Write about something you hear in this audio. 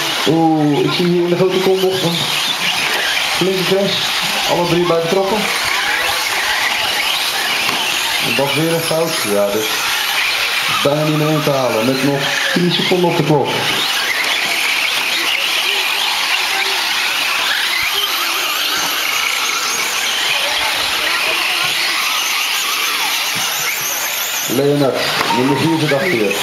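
Small electric model cars whine at high pitch as they race around.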